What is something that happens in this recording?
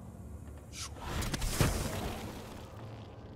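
A magical whoosh rushes past.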